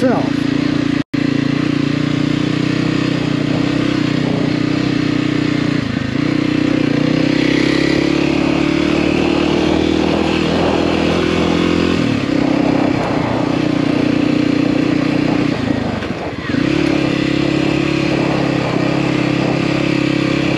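A dirt bike engine drones steadily close by, its pitch rising and falling with the throttle.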